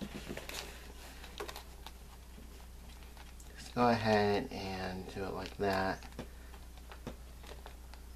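Plastic cases click softly as hands handle them.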